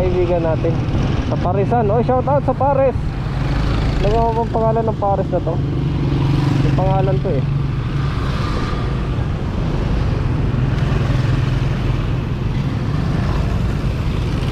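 Wind rushes past a moving motorcycle.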